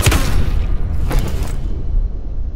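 Gunshots crack in a video game shootout.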